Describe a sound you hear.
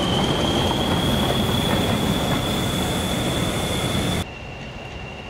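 Railway carriages rumble and clatter past on the tracks close by.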